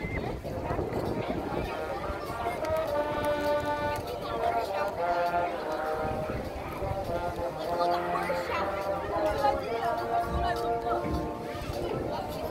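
A marching band plays music outdoors.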